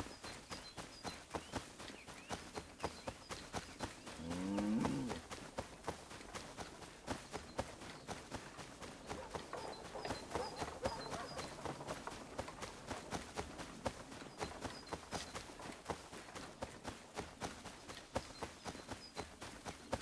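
Quick footsteps run steadily through tall, rustling grass.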